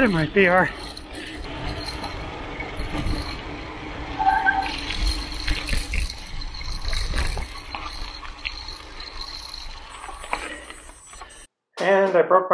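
Bicycle tyres rumble and crunch over a rough trail.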